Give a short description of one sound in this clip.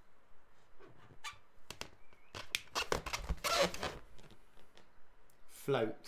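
A balloon squeaks and rubs under a man's hands.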